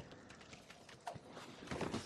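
A fireball bursts with a whoosh of flame.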